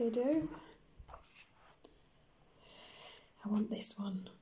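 A page of a book turns with a papery rustle.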